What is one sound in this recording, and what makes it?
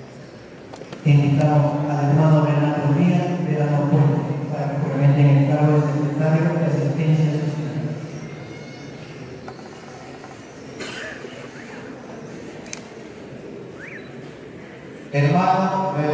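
A man speaks into a microphone over loudspeakers, in a steady, solemn voice.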